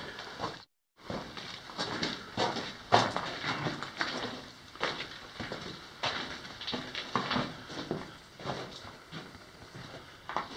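Footsteps crunch on loose gravel and rock.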